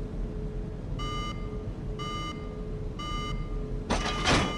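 An electronic panel beeps in short, evenly spaced tones.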